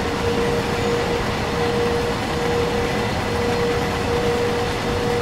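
A train engine hums with a steady droning tone.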